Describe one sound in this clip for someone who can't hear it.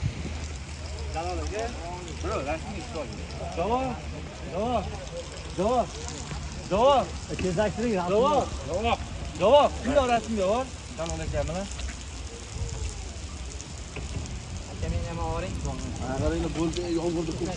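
A man speaks with animation close by, outdoors.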